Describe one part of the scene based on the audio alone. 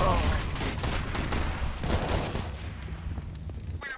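Automatic rifles fire in rapid bursts.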